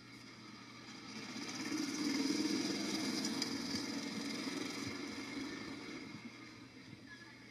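A golf cart drives along a paved path.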